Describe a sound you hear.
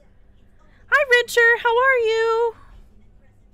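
A young woman sings a short high phrase into a close microphone.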